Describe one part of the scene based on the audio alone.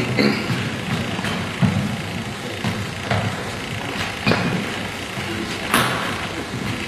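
A table tennis ball clicks sharply back and forth off paddles and a table in an echoing hall.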